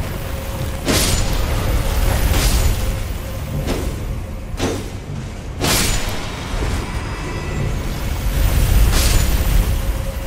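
Sharp sword and magic impacts ring out several times.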